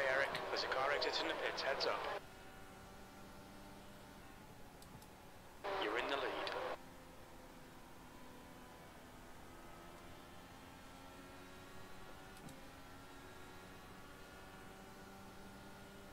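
A racing car engine hums steadily, its pitch slowly rising and falling.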